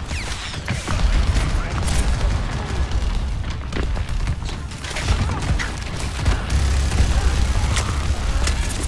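Explosions and gunfire of a battle boom close by.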